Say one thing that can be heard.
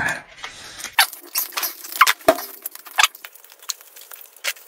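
Dried chili peppers crackle as a man crumbles them over a bowl.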